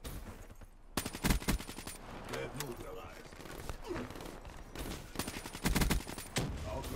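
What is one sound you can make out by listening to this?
Gunfire rattles in short, loud bursts.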